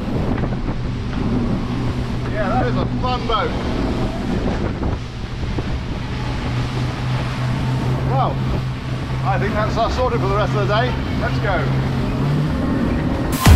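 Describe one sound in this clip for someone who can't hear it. Boat engines roar steadily at speed.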